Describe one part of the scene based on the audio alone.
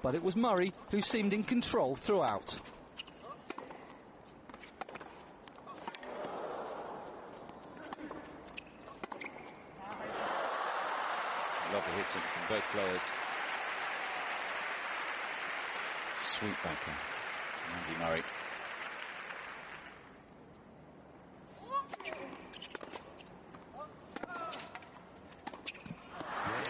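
A tennis ball is struck back and forth with sharp pops of the racket.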